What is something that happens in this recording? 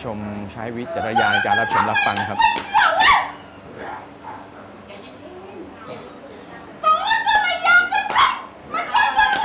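A woman wails and cries out loudly, close by.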